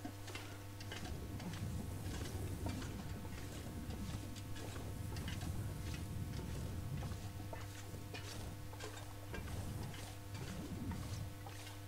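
Wind gusts outdoors.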